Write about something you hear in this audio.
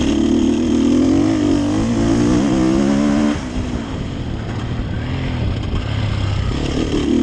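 Tyres crunch over loose dirt.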